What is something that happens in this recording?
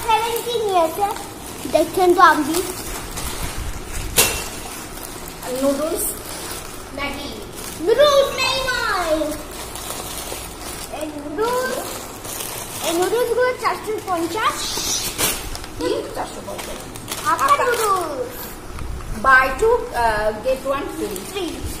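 Plastic packets crinkle as they are handled.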